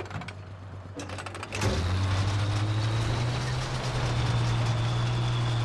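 Tank treads clank over a dirt track.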